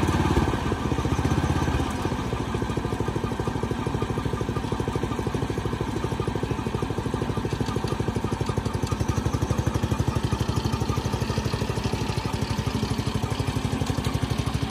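A small engine chugs steadily and fast close by.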